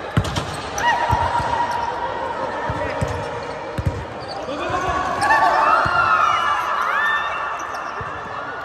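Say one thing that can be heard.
Young women shout and cheer.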